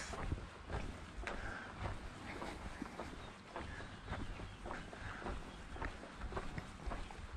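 Footsteps fall on stone paving.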